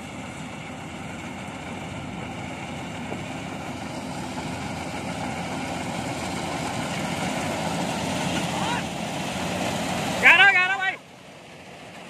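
A combine harvester engine rumbles steadily and grows louder as it approaches.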